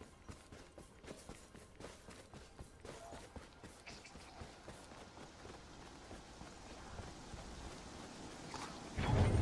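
Quick footsteps thud and patter on wood and stone.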